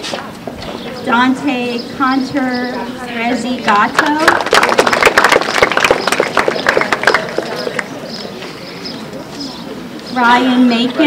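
A young woman speaks calmly into a microphone over a loudspeaker outdoors.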